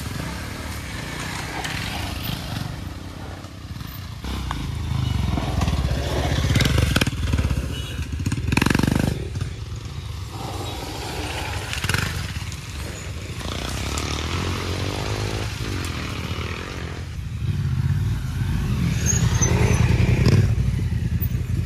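A dirt bike engine revs and putters nearby.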